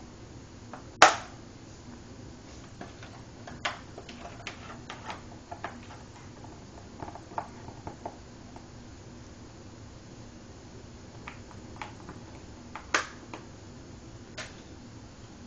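Fridge magnets click and tap as a cat paws at them.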